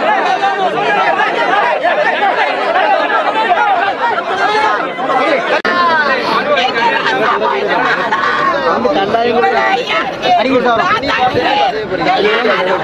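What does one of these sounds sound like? A crowd of men and women wail and cry loudly close by.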